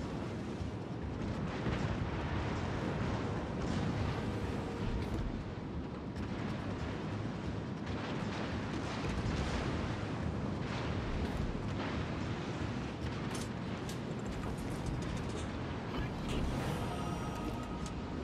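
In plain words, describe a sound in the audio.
A warship's engine rumbles steadily.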